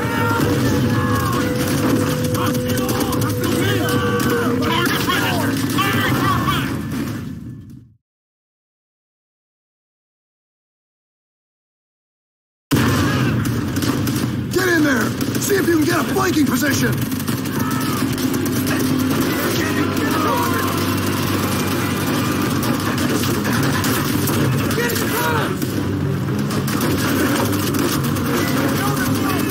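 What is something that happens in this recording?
Gunfire crackles and bangs throughout a battle.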